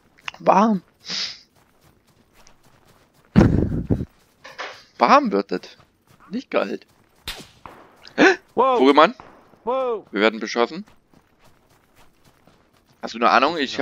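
Footsteps crunch quickly over snow and dry grass.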